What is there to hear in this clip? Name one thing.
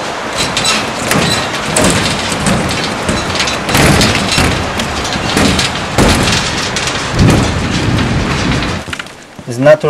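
Wind and rain rush steadily outdoors.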